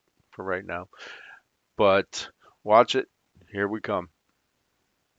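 A middle-aged man speaks calmly into a headset microphone, heard as if over an online call.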